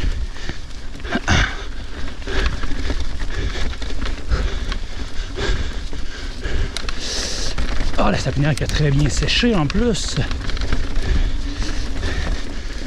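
A bicycle rattles and clatters over bumps and roots.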